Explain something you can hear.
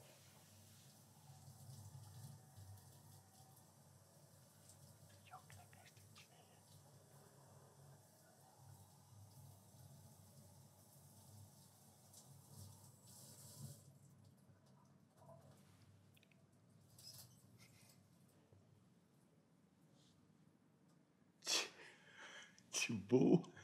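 A second man laughs softly close by.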